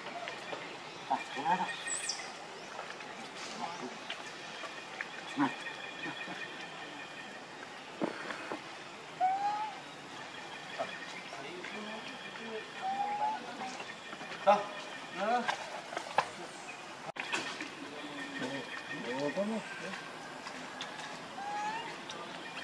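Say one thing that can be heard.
A young monkey squeaks in short, high calls.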